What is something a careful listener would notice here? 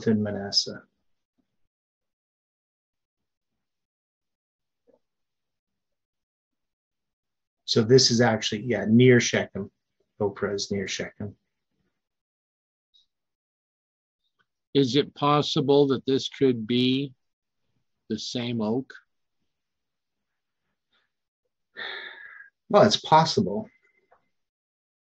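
An elderly man speaks calmly over an online call, with pauses between phrases.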